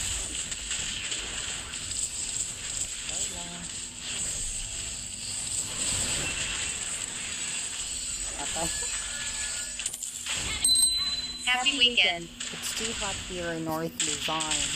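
Game spell effects whoosh and crackle in a battle.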